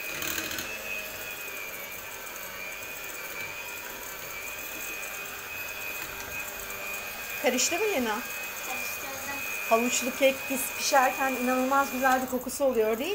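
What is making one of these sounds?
An electric hand mixer whirs steadily.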